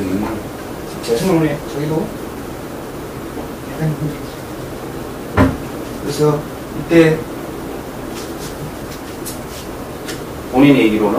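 A middle-aged man speaks calmly and close by, with pauses.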